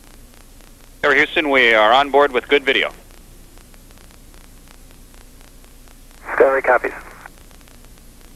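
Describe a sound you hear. A man speaks briefly over a crackly radio link.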